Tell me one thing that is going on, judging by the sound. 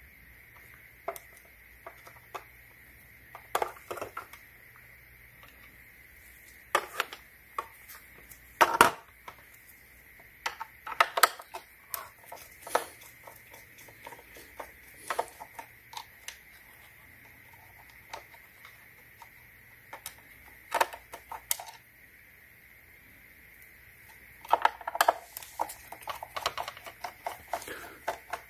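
Plastic parts knock and clatter as a housing is pulled apart.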